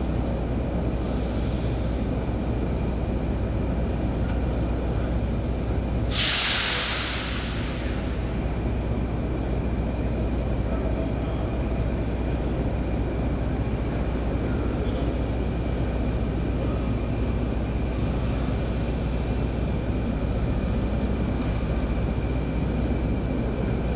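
A train rumbles steadily as it rolls along the tracks.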